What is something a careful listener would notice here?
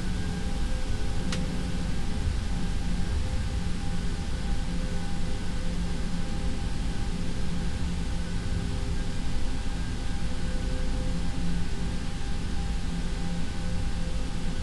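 Jet engines hum steadily with a low rumble.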